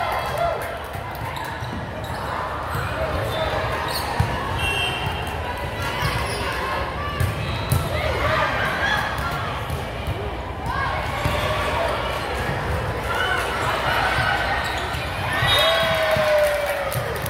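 Sneakers squeak on the gym floor.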